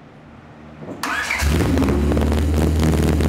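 A car engine starts with a burst of cranking.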